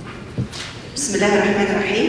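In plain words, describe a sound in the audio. A second woman speaks calmly into a microphone.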